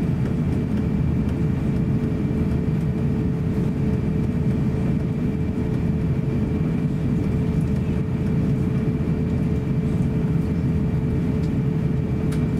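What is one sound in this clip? An airliner's wheels rumble over the taxiway.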